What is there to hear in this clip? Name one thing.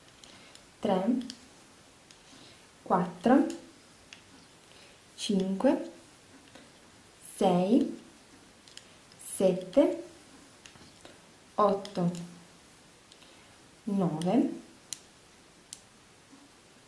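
Knitting needles click softly together.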